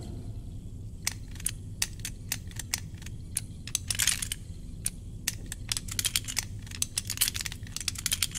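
A combination lock's dials click quickly as they turn.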